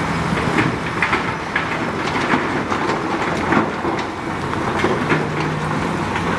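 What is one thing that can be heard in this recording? A dump truck engine idles.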